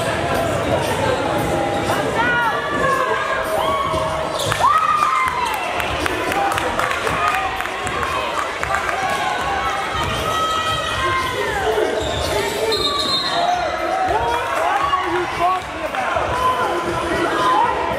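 A crowd of spectators murmurs and calls out in an echoing gym.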